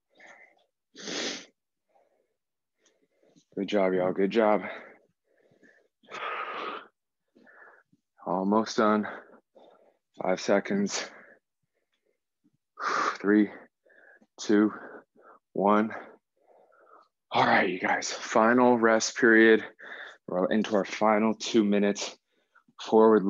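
A young man talks calmly and clearly into a microphone.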